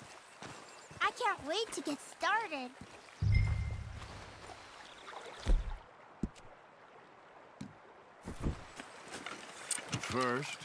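A young boy speaks with animation.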